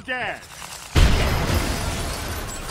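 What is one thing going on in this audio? A loud explosion booms and scatters debris.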